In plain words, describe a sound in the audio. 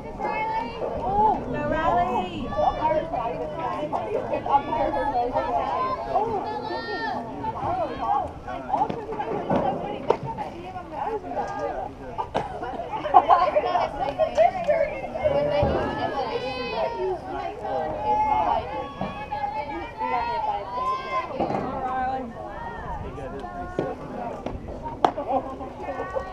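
Teenage girls chant and cheer outdoors.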